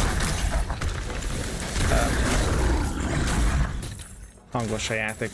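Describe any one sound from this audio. Game combat sounds clash and rumble.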